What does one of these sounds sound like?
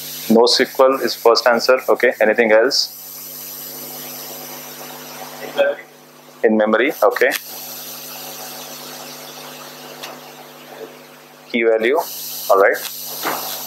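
A man speaks calmly in short bursts with pauses.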